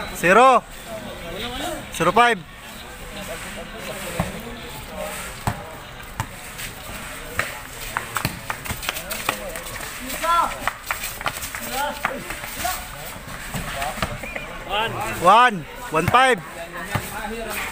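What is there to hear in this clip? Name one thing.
A ball thuds as it is kicked and bounced.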